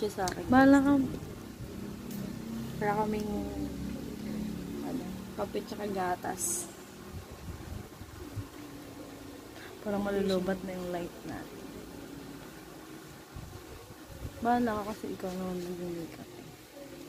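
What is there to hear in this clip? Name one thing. Two young women talk casually close by.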